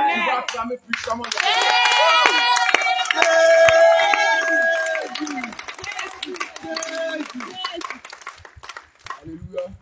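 A group of women sings together loudly.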